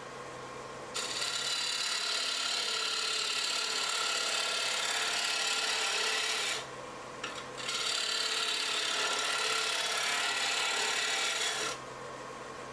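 A gouge scrapes and hisses against spinning wood in bursts.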